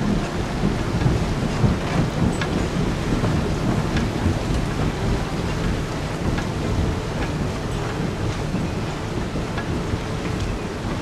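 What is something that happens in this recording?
Waves splash and churn steadily as a ship ploughs through the sea.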